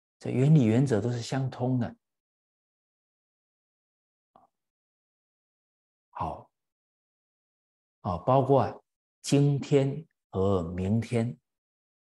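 A middle-aged man speaks calmly and clearly into a microphone, pausing between phrases.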